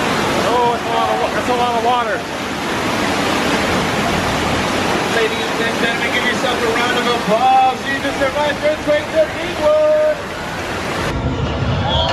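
Water rushes and churns loudly in a roaring flood.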